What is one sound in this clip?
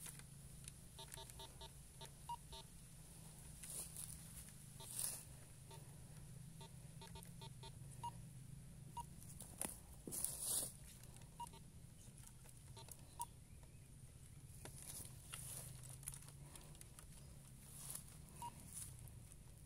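A metal detector gives off short, quick beeps.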